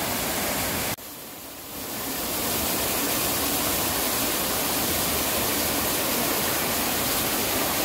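Water rushes down a rocky channel, starting softly and growing to a steady roar.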